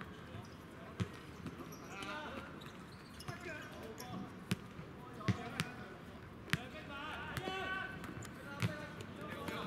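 A ball thuds as players kick it on a hard court.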